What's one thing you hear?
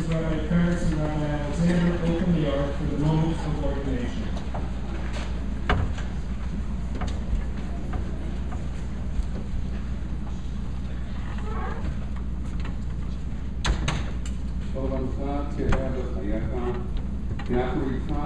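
A crowd murmurs softly.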